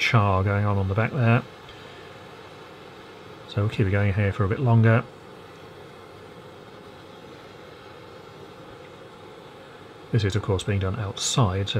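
A gas blowtorch roars steadily.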